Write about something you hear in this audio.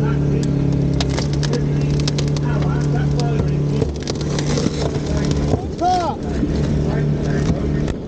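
A hydraulic cutter crunches through car metal.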